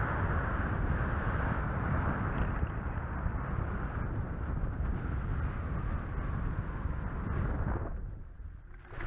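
Wind rushes over the microphone outdoors.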